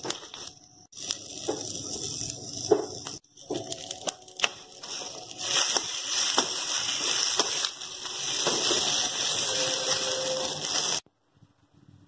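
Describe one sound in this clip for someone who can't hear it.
Food sizzles in hot oil in a pan.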